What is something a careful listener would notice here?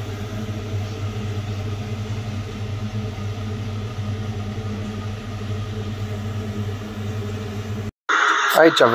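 An oven fan hums steadily.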